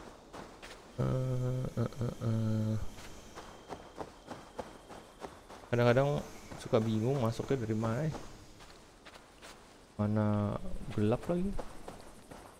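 A man talks calmly into a microphone, close by.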